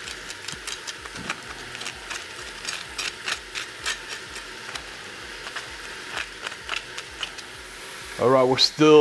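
A knife snips and crackles through dry, brittle chili peppers.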